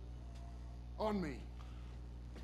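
A second man answers curtly.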